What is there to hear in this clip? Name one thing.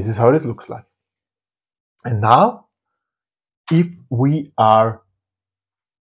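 A man speaks calmly and close to a microphone, in short bursts.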